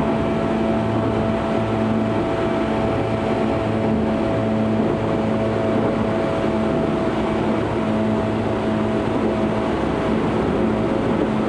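Train wheels clatter over rail joints in a steady rhythm.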